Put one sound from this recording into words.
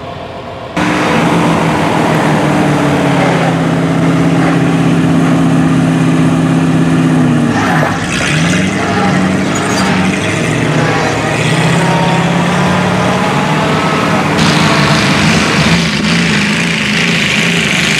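A large truck engine rumbles steadily close by, its pitch dipping and rising as it shifts.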